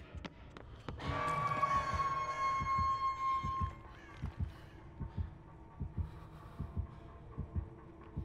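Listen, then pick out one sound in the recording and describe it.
Footsteps thud at an even pace.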